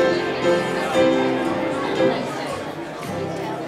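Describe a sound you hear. An acoustic guitar strums a chord and rings out.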